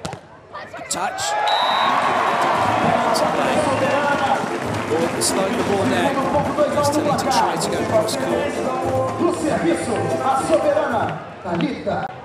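A large crowd cheers and roars outdoors.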